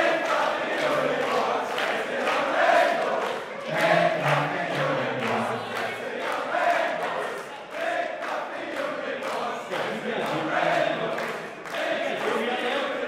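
A large audience of children chatters and cheers loudly in an echoing hall.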